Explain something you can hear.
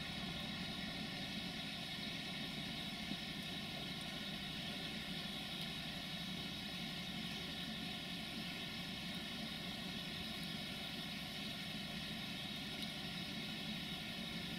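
An electric locomotive hauls a passenger train along the tracks in the distance.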